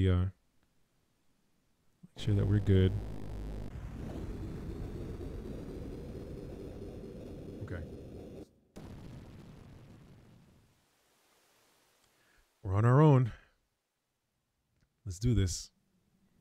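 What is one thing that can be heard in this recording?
A young man speaks with animation into a nearby microphone.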